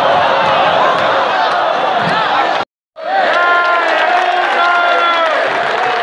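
A huge stadium crowd chants and sings loudly together.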